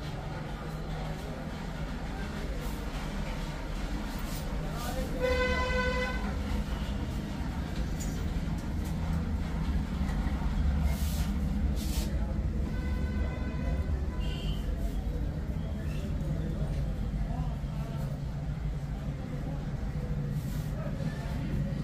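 Hands rub and press on bare skin.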